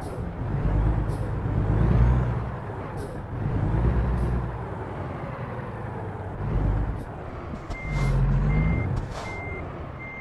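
A truck engine revs in short bursts.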